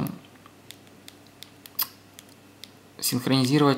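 Phone keys click softly as they are pressed.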